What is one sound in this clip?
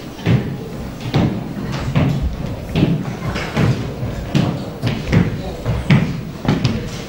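A middle-aged woman speaks steadily and formally into a microphone.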